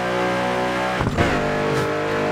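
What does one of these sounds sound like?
A racing car engine drops and rises sharply as it shifts gear.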